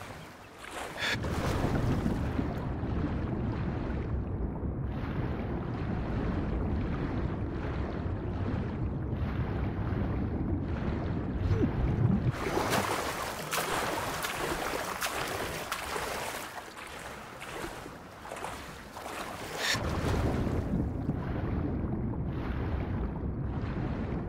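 Water rumbles and gurgles, heard muffled from underwater.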